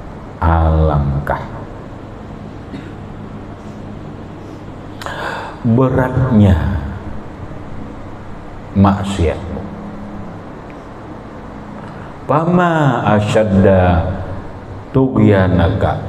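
A middle-aged man preaches through a microphone in bursts, with long pauses.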